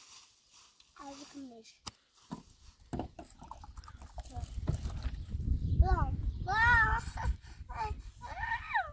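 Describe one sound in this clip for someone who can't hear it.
A small child speaks in a high voice close by.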